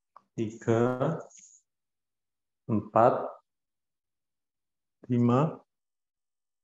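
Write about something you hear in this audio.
A young man speaks in short phrases over an online call, with pauses between them.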